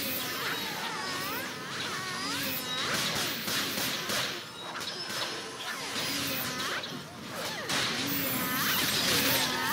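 Blades clash and strike repeatedly.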